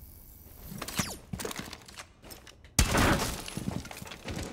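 Gunshots fire in quick bursts from a video game.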